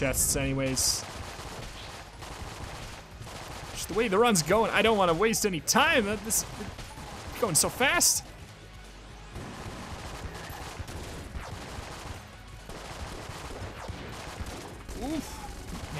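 Game guns fire in quick, bright bursts of electronic shots.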